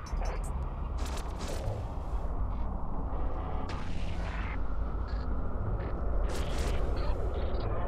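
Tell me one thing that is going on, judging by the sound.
Laser weapons fire in sharp bursts.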